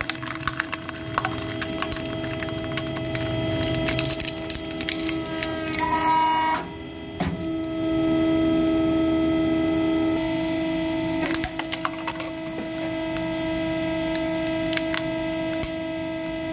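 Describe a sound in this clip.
A hydraulic press hums steadily.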